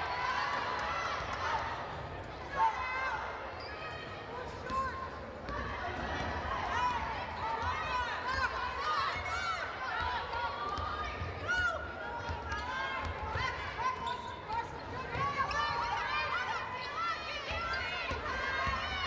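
A crowd murmurs steadily in the stands.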